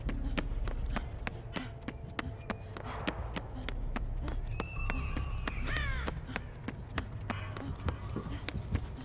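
Quick footsteps run across a hard floor.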